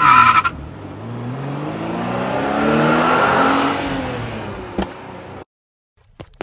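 A car engine hums as a car drives closer.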